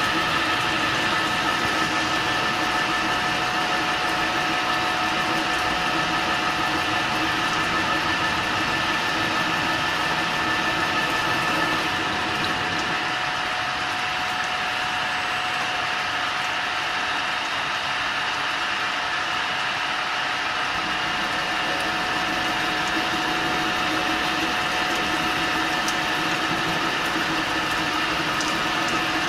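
Coolant sprays and splashes onto the metal.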